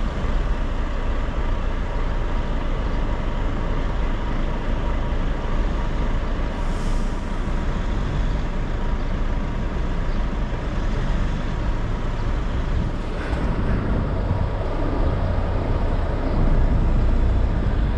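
An engine idles steadily close by.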